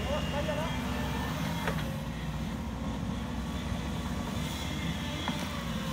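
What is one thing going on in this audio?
An excavator bucket scrapes through soil.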